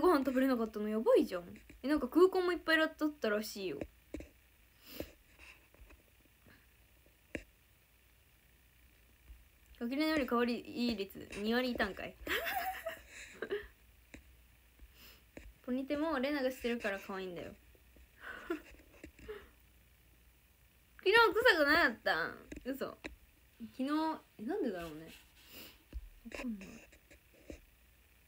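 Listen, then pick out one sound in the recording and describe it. A young woman talks close to a phone microphone, in bursts with pauses.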